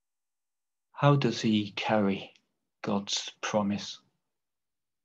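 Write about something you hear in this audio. An older man speaks briefly and calmly over an online call.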